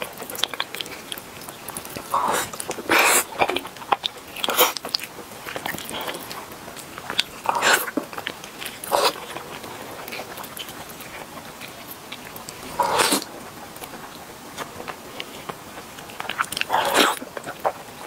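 Sticky sauce smacks and squelches as meat is torn apart.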